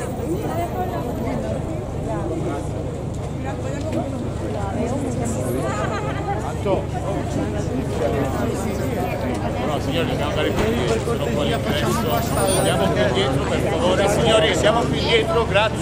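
A crowd of people chatter and call out close by.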